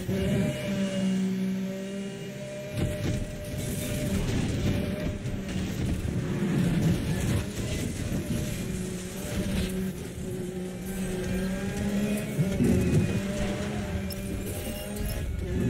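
A sports car engine roars at high revs, rising and falling as it shifts gears.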